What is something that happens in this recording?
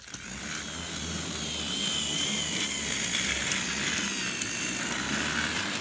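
A toy train motor whirs steadily as it runs along the track.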